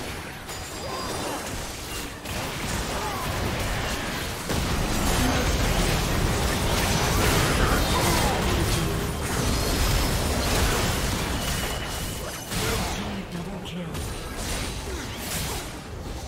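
Magic blasts and clashing hits crackle and boom in a busy fight.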